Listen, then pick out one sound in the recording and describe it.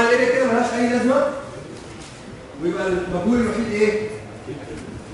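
A man speaks calmly, explaining.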